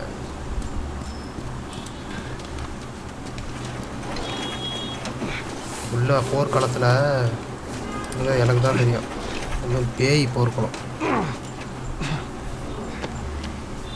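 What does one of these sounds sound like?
A cart rolls and rattles over pavement.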